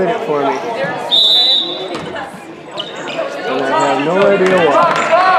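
Spectators in a large echoing gym chatter and call out loudly.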